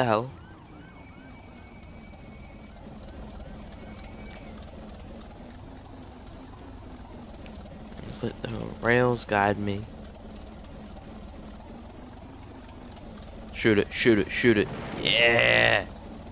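A small engine chugs steadily along a track.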